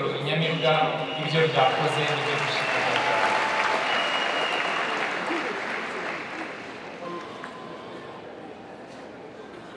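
A large crowd applauds and cheers, slowly fading.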